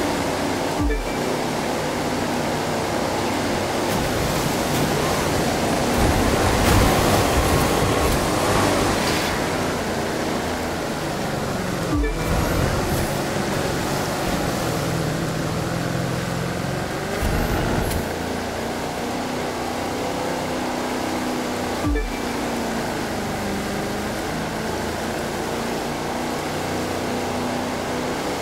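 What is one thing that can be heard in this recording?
Water rushes and splashes against a speeding boat's hull.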